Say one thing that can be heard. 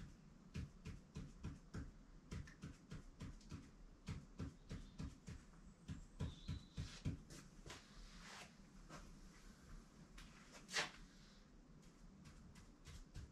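A pen taps out quick strokes on a board.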